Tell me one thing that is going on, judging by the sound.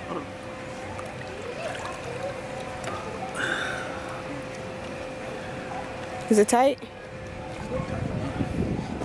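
Water splashes and laps in a pool.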